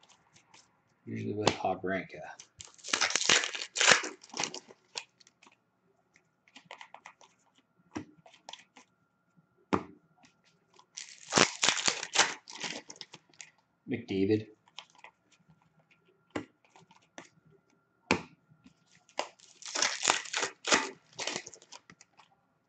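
Plastic wrappers crinkle and rustle in bursts close by.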